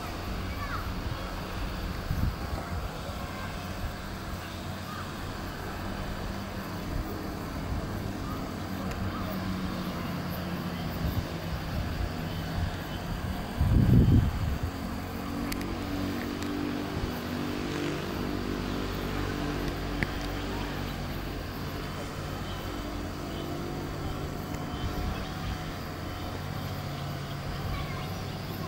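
Wind rustles through grass outdoors.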